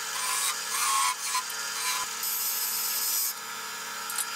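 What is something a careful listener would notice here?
A chisel scrapes and shaves wood on a spinning lathe.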